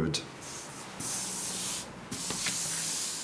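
Paper slides and rustles across a table.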